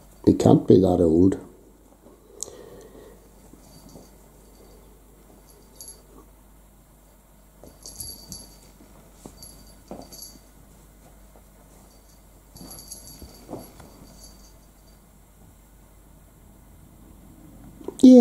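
A kitten scuffles with a soft toy on a carpet.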